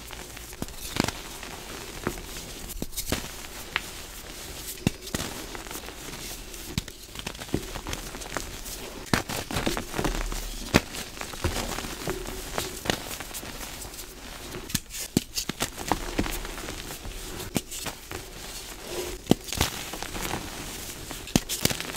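Lumps of chalk snap with sharp cracks.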